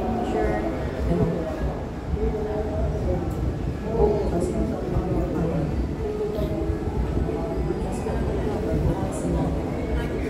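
Backing music plays from a small loudspeaker.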